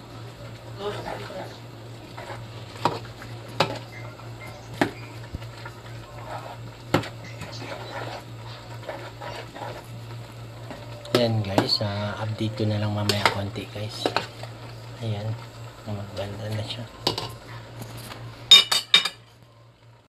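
A metal spoon scrapes and clinks against a metal pot.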